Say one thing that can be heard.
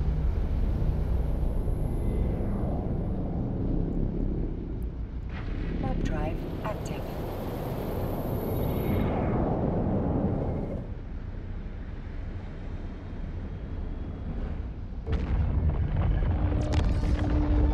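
A spaceship's engines rumble with a deep, steady drone.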